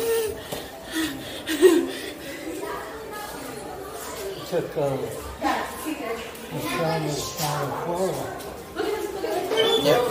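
A young woman laughs.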